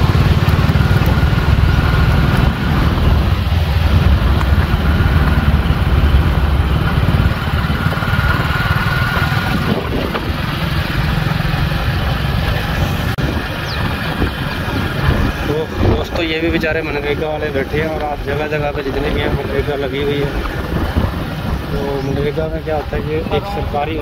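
Water rushes and churns steadily along a channel.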